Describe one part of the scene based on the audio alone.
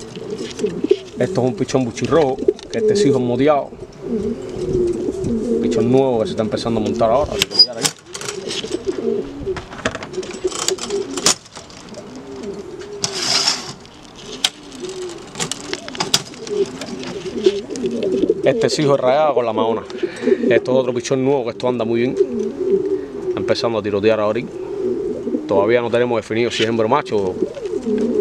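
Pigeons coo steadily close by.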